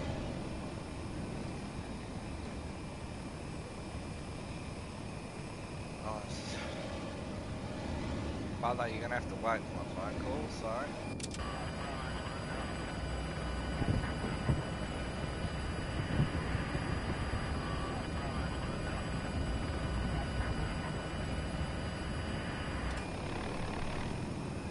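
A helicopter's rotor drones with a steady, low whir.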